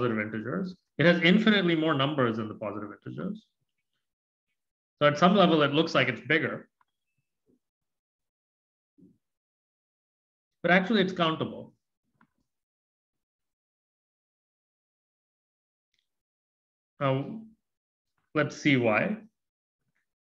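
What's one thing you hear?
A man speaks calmly and close to a microphone, in short bursts with long pauses.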